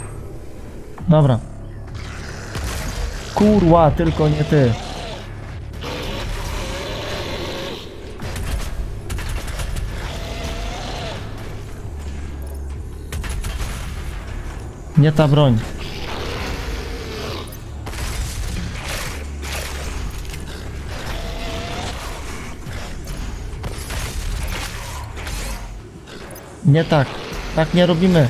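Monsters roar loudly.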